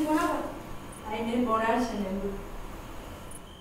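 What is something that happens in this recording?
An elderly woman answers softly.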